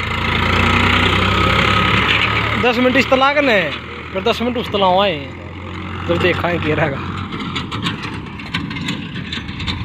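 A tractor engine rumbles close by, then fades as the tractor drives away.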